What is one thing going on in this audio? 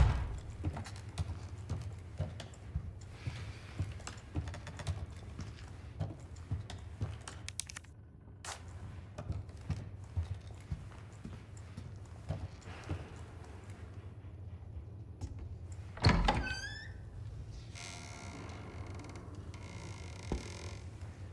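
Footsteps thud on a floor indoors.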